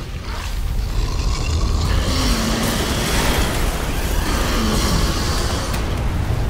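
A huge beast roars loudly.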